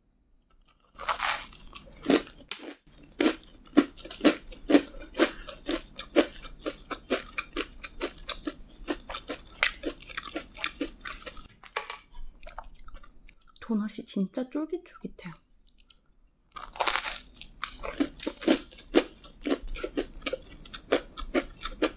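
A young woman chews loudly and wetly with crisp crunching sounds.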